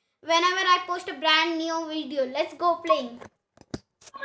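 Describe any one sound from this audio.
A boy talks with animation, close by.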